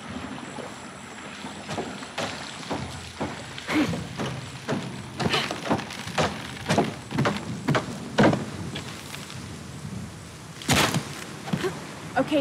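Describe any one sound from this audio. Footsteps patter quickly over stone and wooden planks.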